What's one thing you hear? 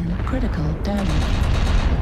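Laser weapons fire in short bursts.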